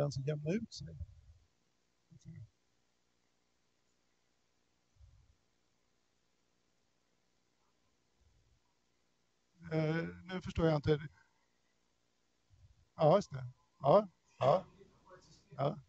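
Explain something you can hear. A man speaks calmly through a microphone, with long pauses.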